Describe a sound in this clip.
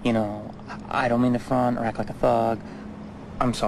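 A man speaks tensely up close.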